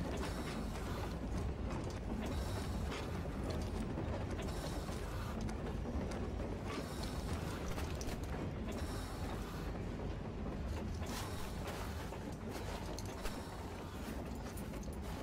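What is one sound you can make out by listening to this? Footsteps splash and scrape on a wet rocky floor.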